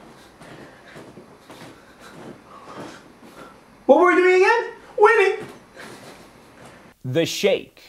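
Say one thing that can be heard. A young man talks animatedly close to a microphone.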